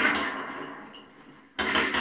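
A gun fires several shots.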